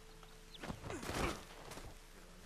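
A rifle shot cracks once.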